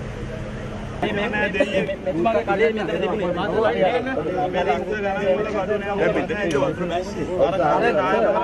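A crowd of men talk over one another excitedly outdoors.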